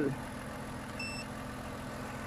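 A battery charger gives a short electronic beep.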